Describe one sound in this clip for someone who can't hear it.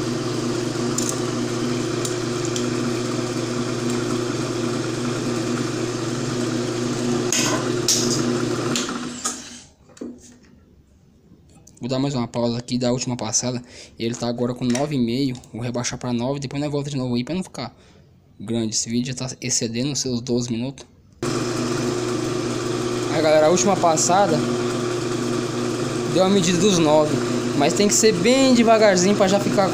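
A lathe motor hums steadily, then winds down and later starts up again.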